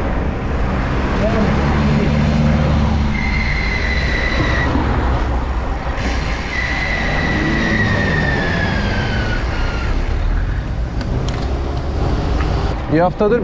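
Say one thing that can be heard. Wind rushes loudly past the riders.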